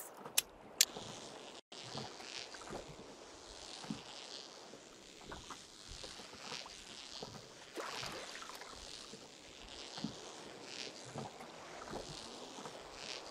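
A fishing reel winds in line with soft clicks.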